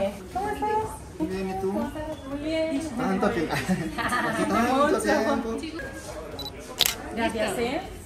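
A young man talks with a woman nearby.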